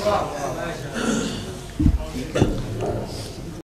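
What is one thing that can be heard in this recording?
An older man speaks through a microphone.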